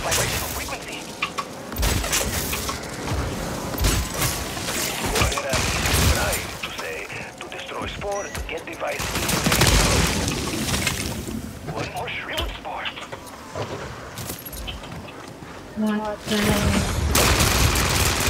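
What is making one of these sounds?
Gunfire bursts loudly from a game.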